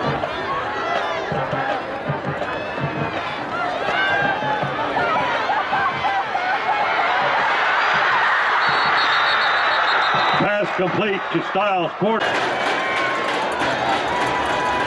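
A large crowd cheers and roars outdoors, swelling loudly during a long run.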